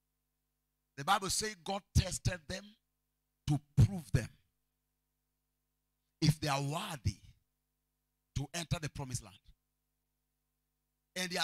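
A man preaches with animation through a microphone, in short bursts with pauses.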